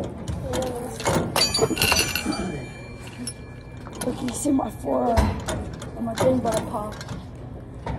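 A teenage boy talks and laughs nearby, with animation.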